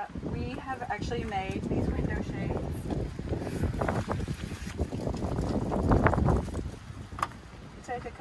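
A panel rustles and crinkles in a woman's hands.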